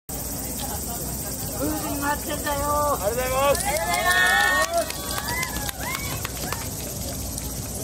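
Wooden clappers clack in quick bursts.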